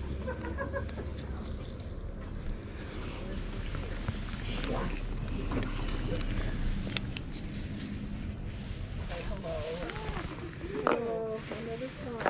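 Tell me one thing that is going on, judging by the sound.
A small cardboard box rustles and taps as it is handled.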